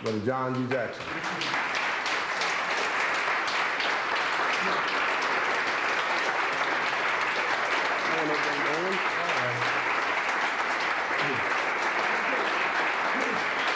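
A crowd claps steadily.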